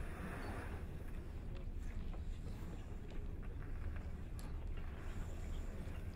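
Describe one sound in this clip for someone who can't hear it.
A woman speaks quietly into a microphone.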